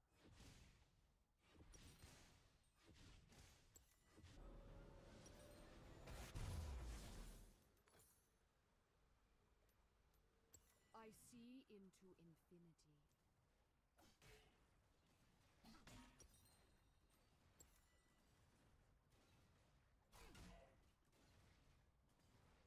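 Game spells blast and crackle in a close fight.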